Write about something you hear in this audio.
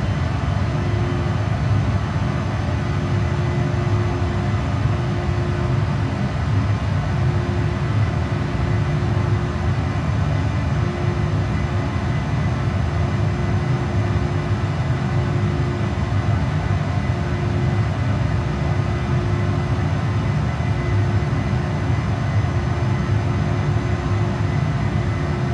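A deep, steady roar of an airliner in flight.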